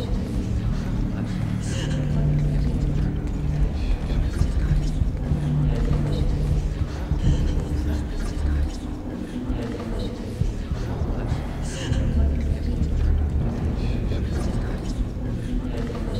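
Footsteps of a group shuffle slowly along a hard floor.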